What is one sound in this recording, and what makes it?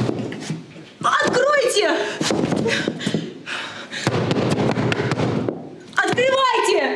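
A young woman shouts with urgency nearby.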